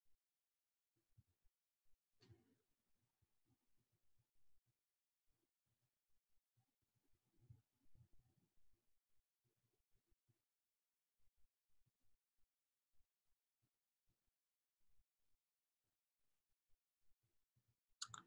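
A woman speaks quietly and calmly.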